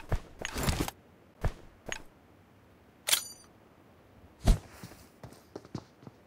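A grenade pin clicks as it is pulled.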